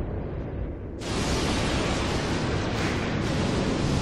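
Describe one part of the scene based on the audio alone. Steam hisses loudly from a burst pipe.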